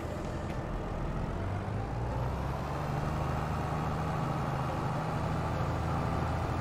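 A tractor engine rumbles steadily and slowly rises in pitch as it drives.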